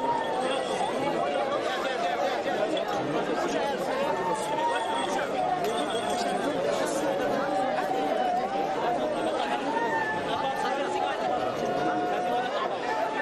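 A large crowd of men and women chants and sings together outdoors.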